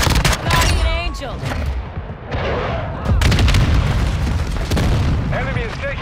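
Rapid rifle gunshots crack loudly in bursts.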